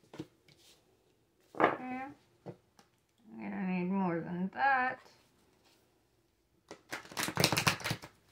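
Cards tap and slap on a table.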